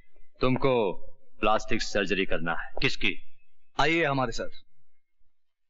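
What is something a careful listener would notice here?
A man speaks firmly and dramatically, close by.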